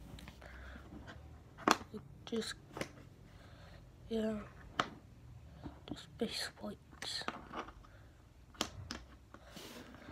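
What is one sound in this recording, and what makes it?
Plastic pieces click and tap against a hard tabletop.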